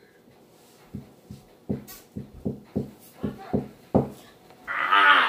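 Feet stomp in quick beats on a floor.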